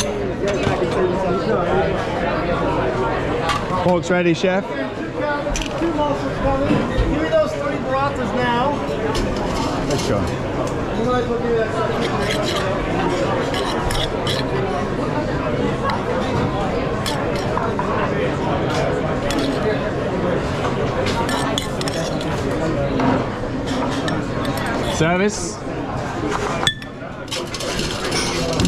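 A busy crowd of diners chatters all around.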